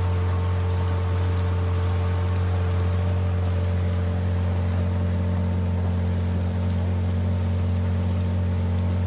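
Water splashes against the hull of a moving boat.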